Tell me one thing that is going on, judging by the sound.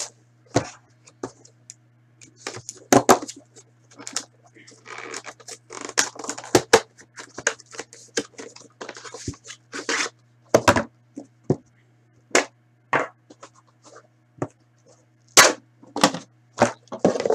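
Cardboard boxes rustle and scrape as hands handle them.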